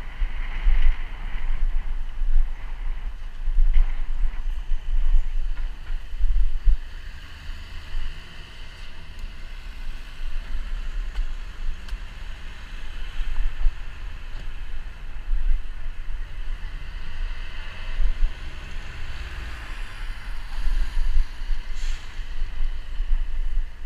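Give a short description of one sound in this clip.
Traffic hums and rumbles along a busy street outdoors.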